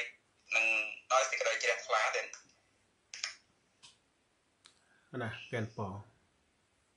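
A man speaks calmly into a microphone, close by, in short phrases.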